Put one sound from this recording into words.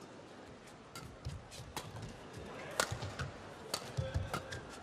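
A racket strikes a shuttlecock with sharp pops in a large echoing hall.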